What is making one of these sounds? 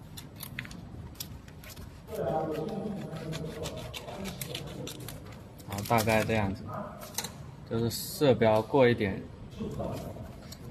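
Plastic film crinkles and rustles as hands handle it.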